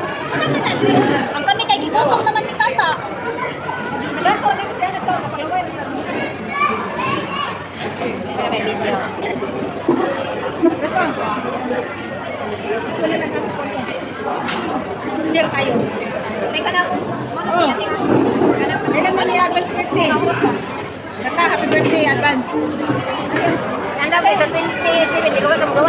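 Voices chatter in an echoing hall.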